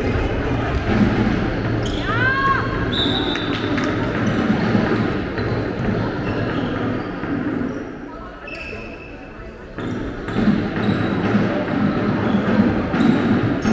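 A handball bounces on the floor with echoing thuds.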